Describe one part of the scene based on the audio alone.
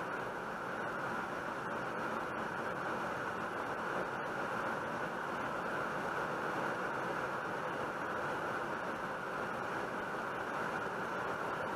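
Tyres roll steadily on a road.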